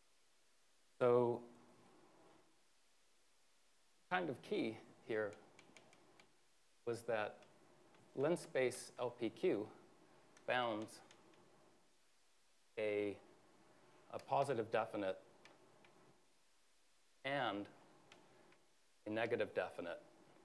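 A man speaks calmly in short phrases, as if lecturing.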